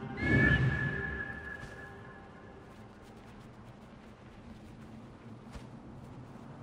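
Wind blows softly and steadily.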